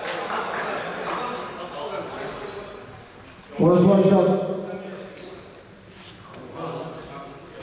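Young men call out to each other.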